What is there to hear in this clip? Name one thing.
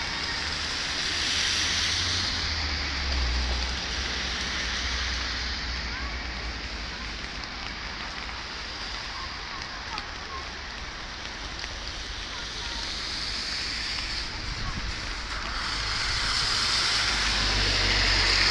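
Wind blusters against the microphone.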